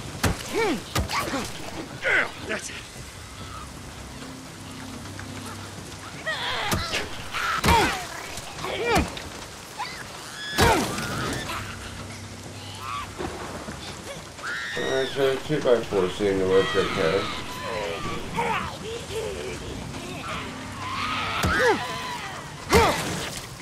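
A wooden club thuds hard against a body.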